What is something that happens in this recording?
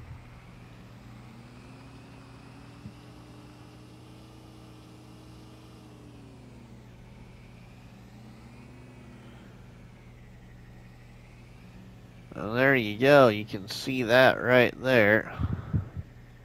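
A truck engine hums steadily, rising and falling in pitch as it drives.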